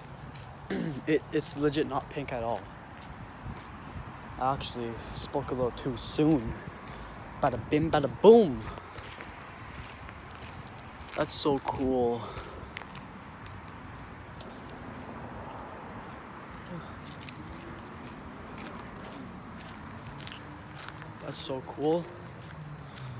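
A young man talks close up with animation.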